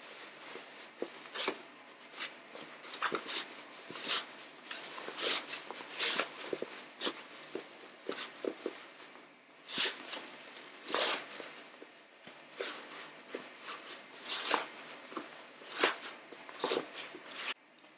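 Cotton fabric rustles and crinkles as hands handle it up close.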